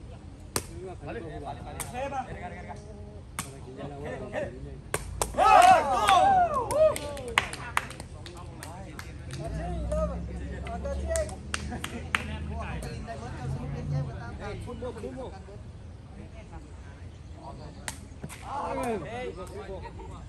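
Men shout and call out loudly outdoors.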